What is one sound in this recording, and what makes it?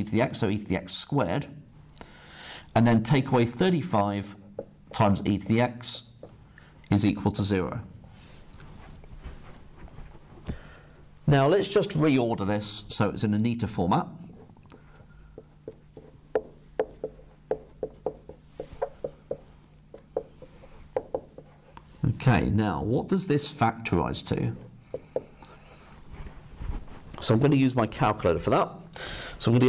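A man explains calmly, close to a microphone.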